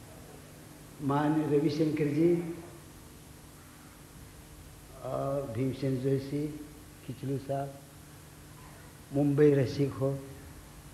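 A man sings in long phrases through a microphone.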